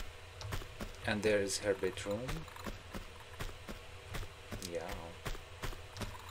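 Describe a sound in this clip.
Footsteps patter quickly and evenly on a hard floor.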